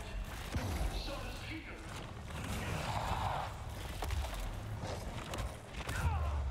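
Heavy thuds and impacts sound from a fight.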